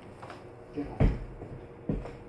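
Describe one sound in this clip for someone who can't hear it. A dull thump sounds close by.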